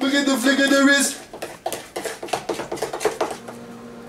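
A whisk clatters against a bowl.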